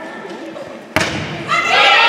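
A volleyball is served with a sharp slap.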